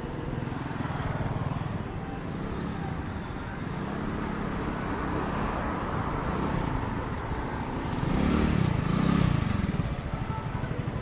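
Motor scooters pass by on the street.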